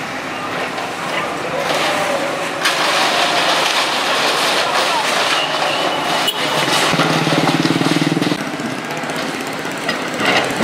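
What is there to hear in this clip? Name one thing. A digger engine rumbles steadily nearby.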